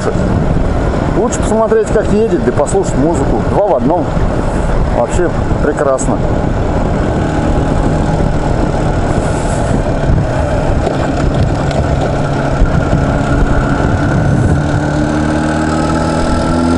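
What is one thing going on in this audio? A motorcycle engine hums steadily, rising in pitch toward the end.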